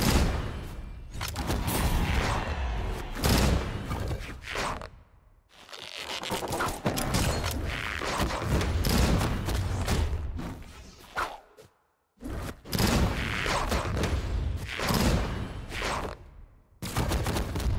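Video game fighting effects whoosh, smack and burst in quick succession.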